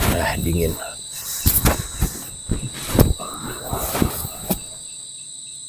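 Blankets and plastic sheeting rustle and crinkle.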